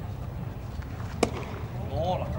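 A baseball smacks into a catcher's leather mitt.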